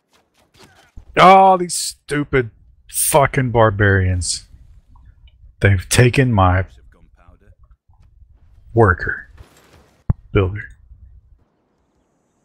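A man talks with animation through a headset microphone.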